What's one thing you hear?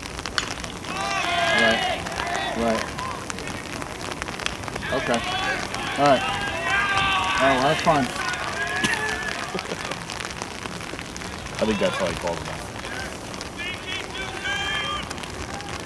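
Young men shout and cheer from a distance outdoors.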